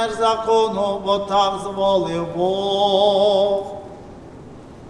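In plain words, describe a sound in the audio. A man chants a prayer in a sung voice nearby.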